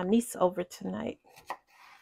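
A knife cuts through a bell pepper on a wooden cutting board.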